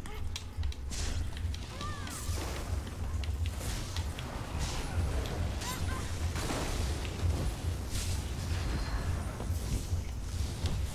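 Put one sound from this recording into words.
Electric spells crackle and zap in a fight.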